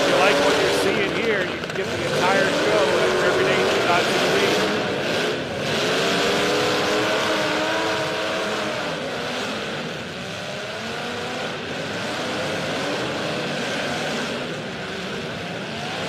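A crowd cheers and murmurs.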